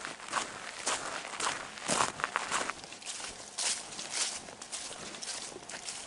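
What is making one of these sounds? Footsteps rustle through tall wet grass.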